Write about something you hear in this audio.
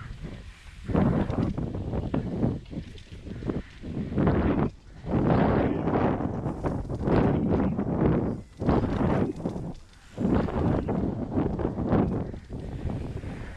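Bicycle tyres rumble and crunch over a bumpy dirt track.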